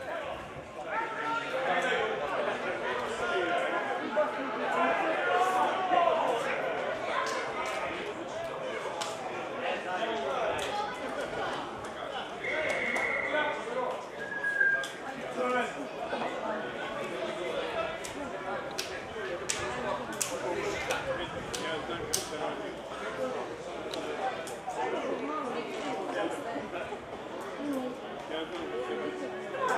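Men shout and call to each other across an open field.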